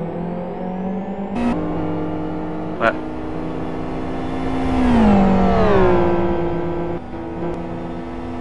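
Racing car engines roar steadily.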